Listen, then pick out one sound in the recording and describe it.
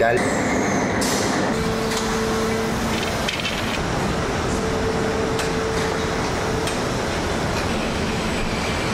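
Factory machinery rumbles and hums steadily.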